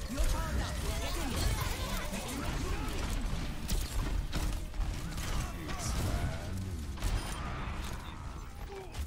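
Gunfire and explosions crackle in a video game battle.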